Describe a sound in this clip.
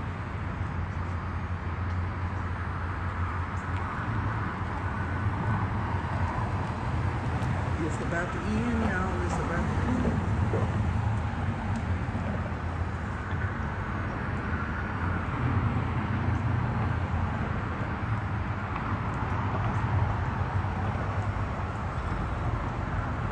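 Wind gusts and rumbles steadily outdoors.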